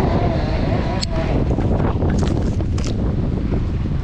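Metal climbing gear clinks.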